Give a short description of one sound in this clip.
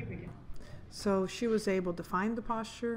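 A woman speaks calmly nearby in a large echoing hall.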